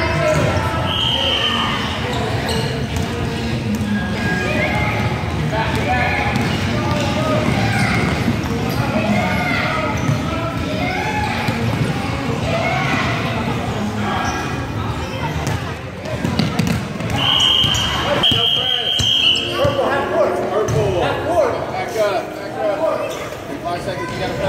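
Young children shout and chatter in a large echoing hall.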